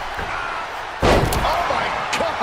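A wrestler dives from the ropes and crashes onto the ring mat with a heavy thud.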